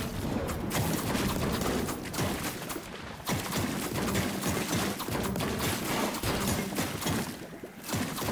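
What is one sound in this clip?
A pickaxe smashes into debris with sharp cracks.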